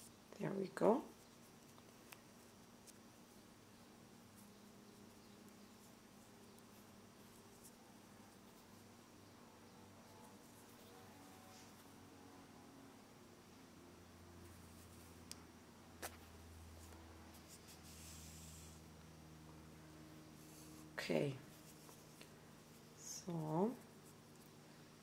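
Thread rustles softly as fingers pull and loop it.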